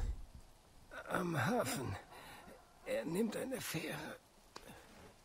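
A wounded man answers weakly, gasping between words.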